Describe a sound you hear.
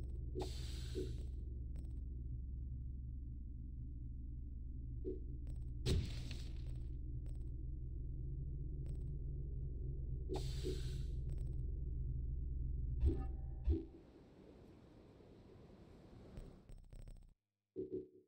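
Soft menu whooshes and clicks sound now and then.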